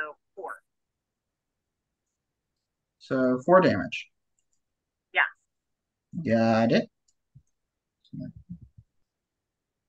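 A young man speaks in short bursts over an online call.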